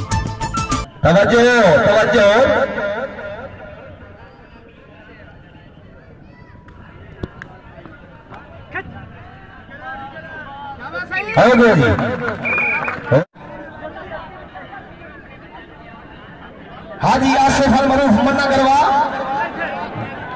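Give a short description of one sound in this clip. A crowd of men cheers and shouts outdoors.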